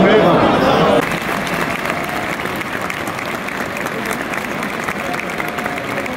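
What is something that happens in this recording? A stadium crowd applauds.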